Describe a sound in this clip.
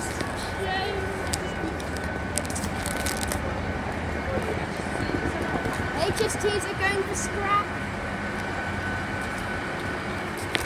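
A train rumbles and rattles past in an echoing underground station.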